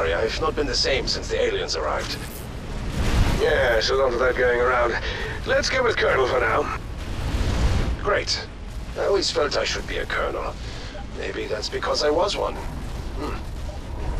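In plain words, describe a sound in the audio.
Game towers fire crackling energy bolts.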